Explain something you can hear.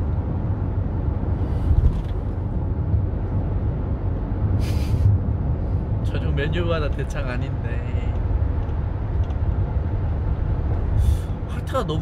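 A car engine rumbles steadily inside the car.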